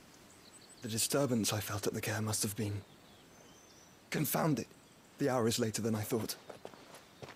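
A young man speaks calmly and close.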